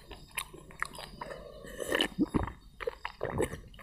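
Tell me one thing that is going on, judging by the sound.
A man slurps and gulps a drink from a clay pot.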